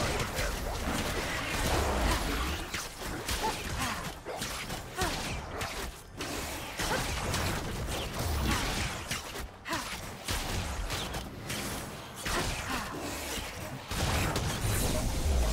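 Game spells and weapon hits crackle and boom in quick bursts.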